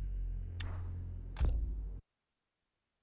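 Menu clicks sound briefly.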